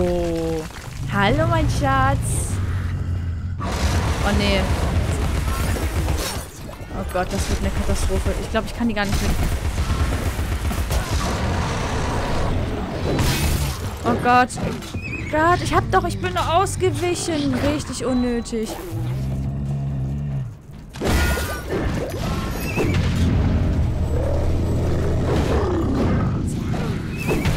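Weapons clash and magic blasts crackle in a fight.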